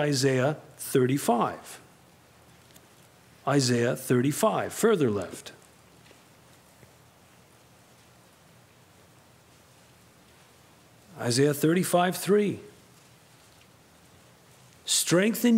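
A man reads aloud calmly into a microphone, with long pauses.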